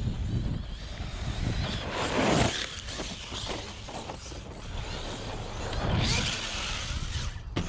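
Small tyres skid and scrabble over loose dirt.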